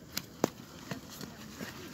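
A small child's footsteps scuff on sand and gravel.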